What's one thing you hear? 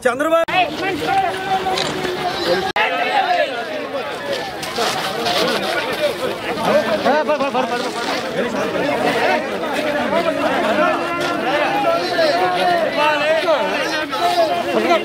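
A crowd of men shouts and chants loudly nearby.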